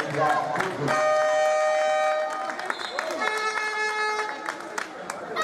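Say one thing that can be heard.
A referee's whistle blows in short loud blasts.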